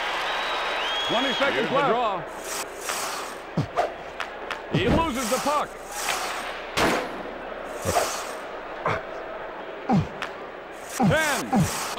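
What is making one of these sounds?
A crowd roars steadily in a video game's hockey arena.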